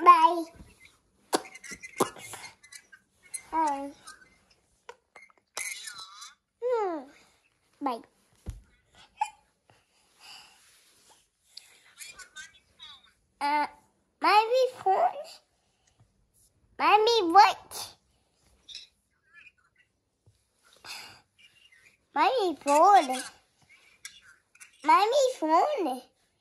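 A small child babbles and talks close by.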